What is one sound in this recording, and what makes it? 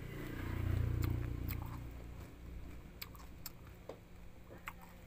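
A young woman crunches on a raw vegetable close to a microphone.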